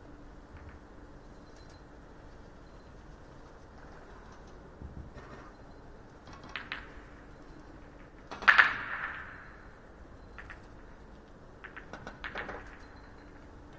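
A cue strikes a ball with a sharp tap.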